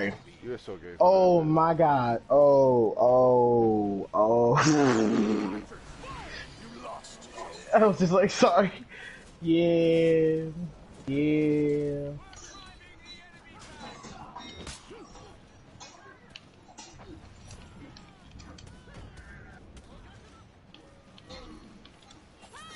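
Swords clash and ring in a fierce fight.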